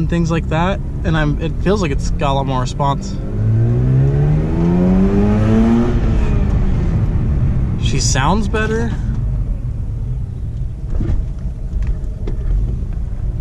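A car engine hums and revs up, rising in pitch as the car speeds up.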